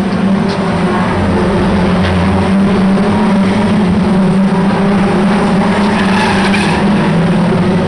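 Cars bang and crunch into each other.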